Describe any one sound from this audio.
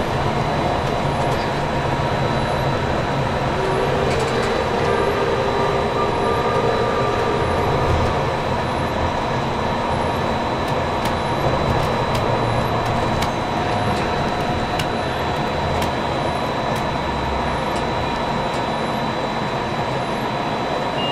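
A monorail train hums and rumbles steadily along its track.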